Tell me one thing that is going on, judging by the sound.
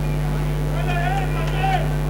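A handball bounces on a wooden floor.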